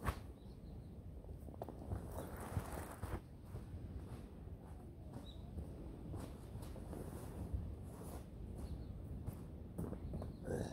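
A plastic sheet rustles and crinkles as it is spread on the ground.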